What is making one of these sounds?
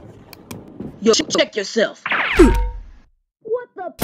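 An electric stun gun zaps and crackles.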